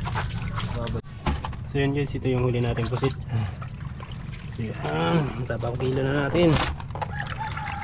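Water splashes and sloshes in a tub.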